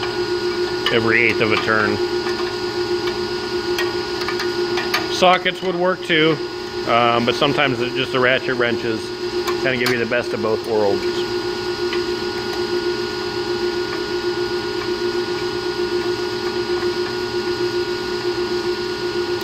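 A wrench clicks against metal bolts.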